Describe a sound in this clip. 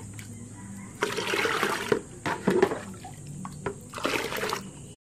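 Water pours from a bucket into a plastic tub.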